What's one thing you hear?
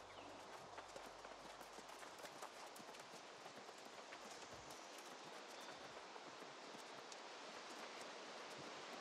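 Footsteps rustle quickly through grass and brush.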